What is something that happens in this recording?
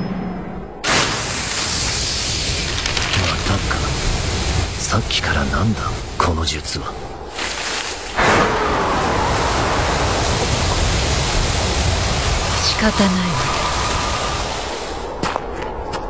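Many sheets of paper flutter and rustle in the wind.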